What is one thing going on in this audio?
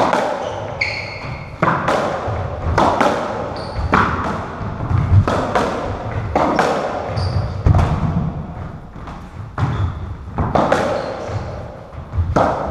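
A squash ball smacks against walls and rackets, echoing loudly in a hard-walled court.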